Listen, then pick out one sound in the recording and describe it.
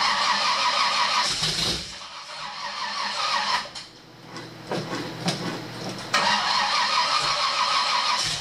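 A car engine runs loudly and roughly, revving up and down.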